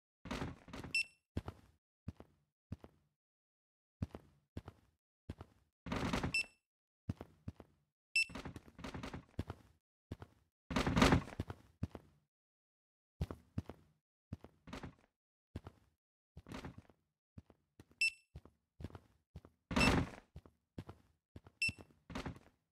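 Metal parts clatter and clank as they are dropped.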